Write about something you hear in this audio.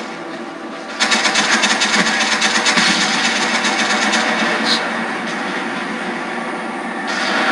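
Video game machine gun fire plays through a television speaker.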